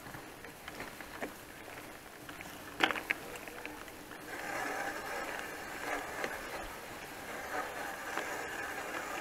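Bicycle tyres roll and crunch over a bumpy dirt track.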